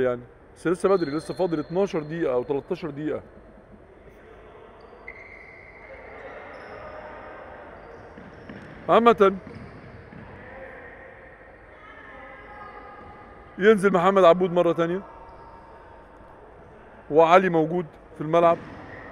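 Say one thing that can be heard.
Players' shoes squeak on a hard floor in an echoing hall.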